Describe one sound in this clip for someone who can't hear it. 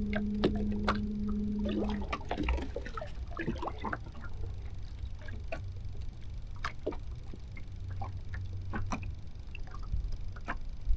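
Small waves lap and splash against a boat's hull.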